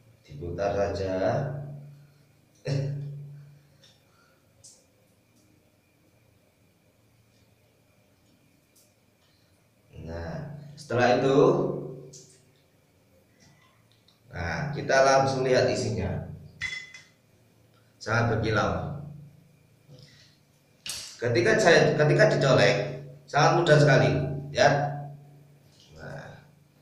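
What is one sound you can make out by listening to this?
A man speaks with animation close by, in a small echoing room.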